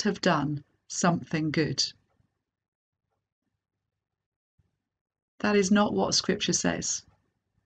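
A middle-aged woman speaks calmly and close to a microphone, with pauses.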